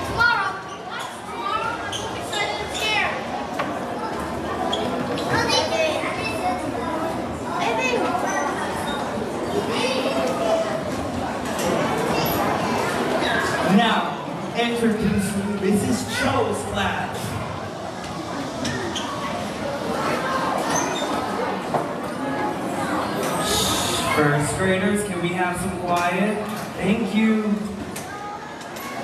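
A crowd of children and adults chatters throughout a large echoing hall.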